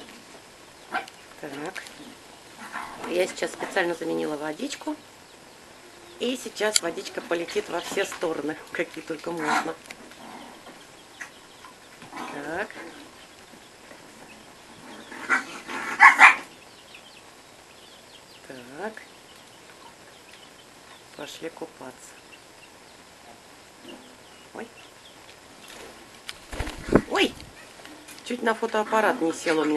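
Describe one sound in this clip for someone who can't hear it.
Parakeets chatter and chirp close by in short bursts.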